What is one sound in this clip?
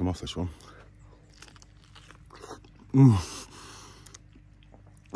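A man bites into a crisp fruit and chews.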